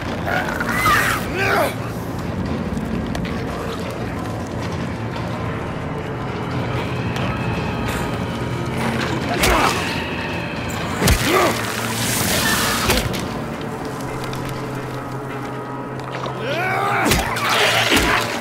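A wooden plank thuds heavily against a creature.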